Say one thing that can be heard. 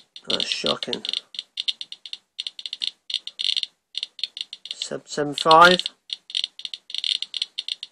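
A radiation counter clicks rapidly and irregularly.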